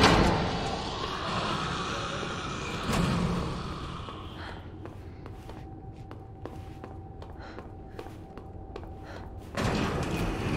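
A woman's high heels click on a hard floor as she walks.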